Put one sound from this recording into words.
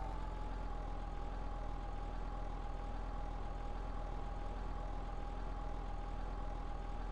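A car engine runs steadily at a low rumble.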